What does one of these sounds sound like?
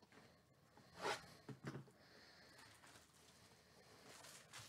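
A plastic-wrapped box is picked up and handled, its wrapping crinkling.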